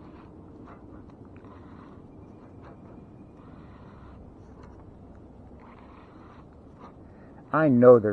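A fishing reel whirs as it is cranked.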